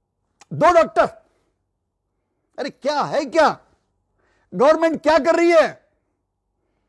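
An elderly man speaks emphatically into a close microphone, in short bursts with pauses.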